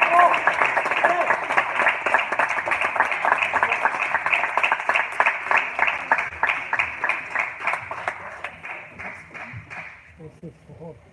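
A crowd claps in steady rhythm in an echoing hall, slowly fading.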